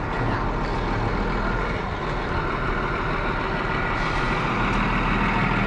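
A bus engine rumbles as the bus drives slowly closer.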